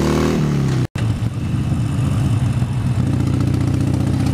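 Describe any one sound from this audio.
A motorcycle engine drones steadily at cruising speed.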